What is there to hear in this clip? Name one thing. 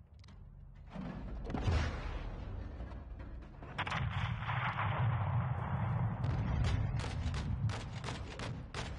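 A missile whooshes in and explodes with a deep, rumbling boom.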